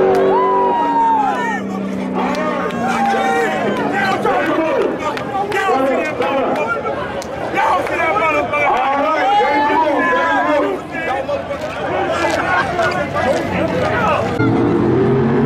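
A crowd of men and women talk and shout with excitement outdoors.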